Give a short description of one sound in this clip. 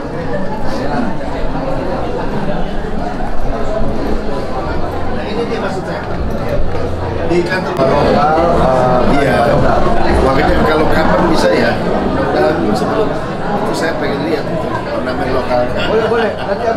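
A crowd of people murmurs in the background.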